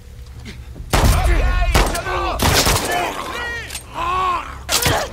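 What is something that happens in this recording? Pistol shots ring out sharply.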